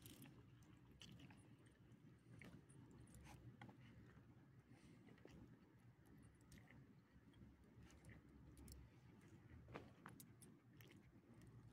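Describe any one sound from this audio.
Dog tags jingle faintly.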